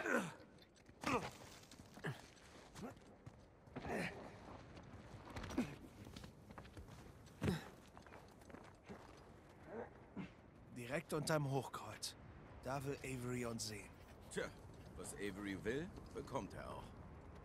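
Footsteps crunch on rock and snow.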